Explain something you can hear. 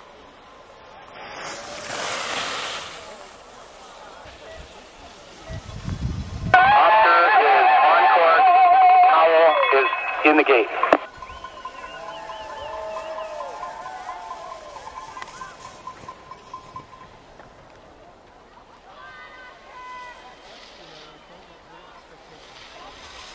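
Skis scrape over the snow.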